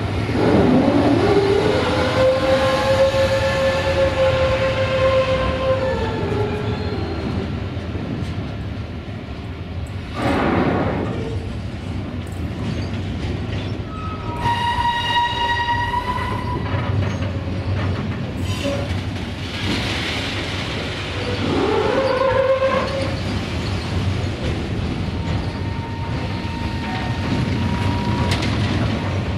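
A freight train rumbles past close by, its wheels clattering over the rail joints.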